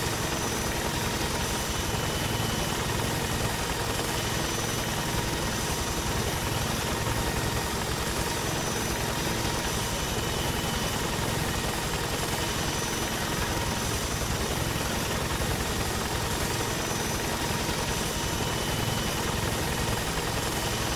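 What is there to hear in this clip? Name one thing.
A helicopter's rotor thumps steadily close by.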